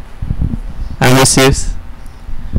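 A young man speaks into a microphone.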